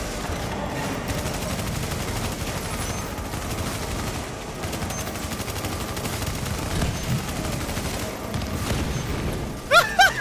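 Automatic gunfire rattles rapidly in bursts.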